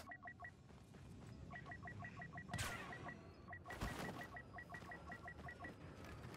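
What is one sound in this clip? Short electronic beeps tick rapidly in a steady rhythm.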